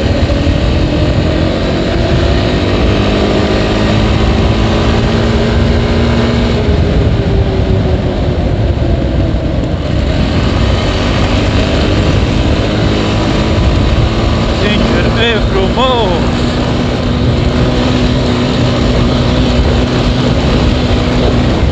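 A quad bike engine hums and revs steadily close by.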